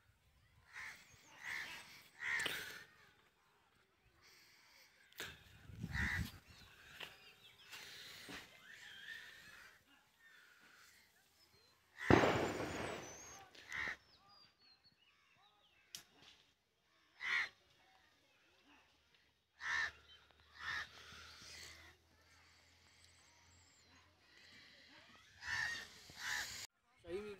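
Birds chirp and call in the trees.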